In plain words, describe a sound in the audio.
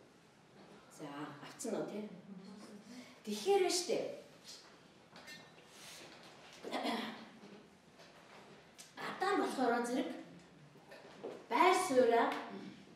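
A middle-aged woman speaks calmly into a microphone, in a room with some echo.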